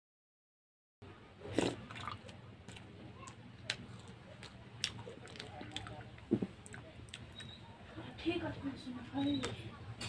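A man chews and munches food noisily up close.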